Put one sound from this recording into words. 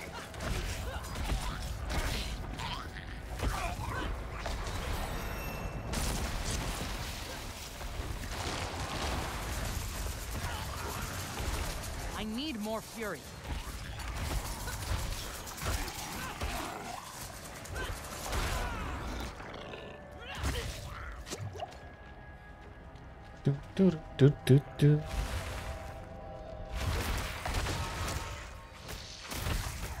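Game combat effects whoosh and crash.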